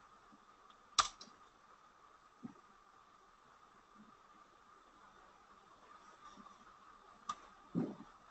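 A computer mouse clicks sharply.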